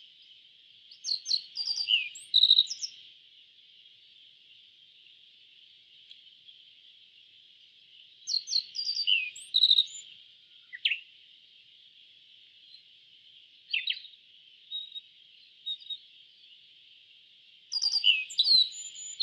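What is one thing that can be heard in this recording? A small bird sings a bright, chirping song in short bursts.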